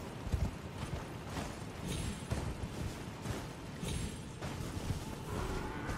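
Horse hooves thud on grass.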